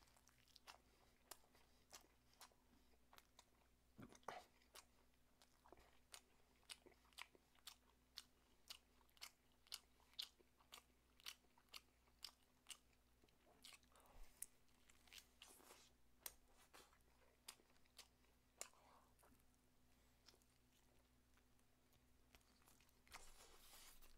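Crispy fried chicken crunches and crackles close to a microphone.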